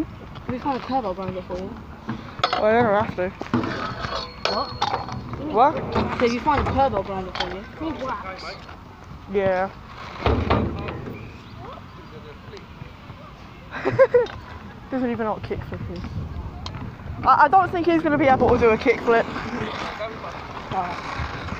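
Teenage boys talk and laugh close by, outdoors.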